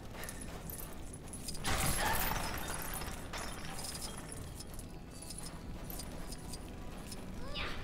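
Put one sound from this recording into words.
Small coins tinkle and chime as they are picked up.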